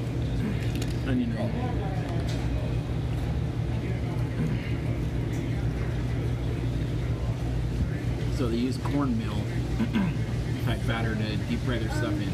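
A man talks close by in a calm voice.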